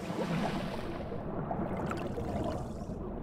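Bubbles gurgle in muffled water as a swimmer dives under.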